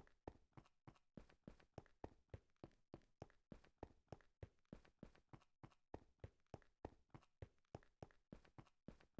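Quick footsteps crunch steadily on rough stone.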